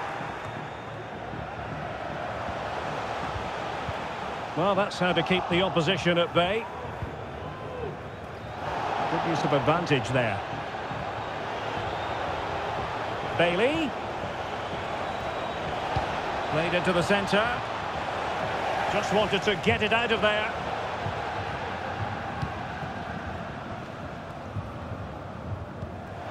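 A large stadium crowd murmurs and roars.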